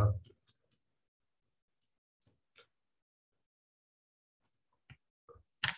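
A young man speaks quietly in short bursts close to a microphone.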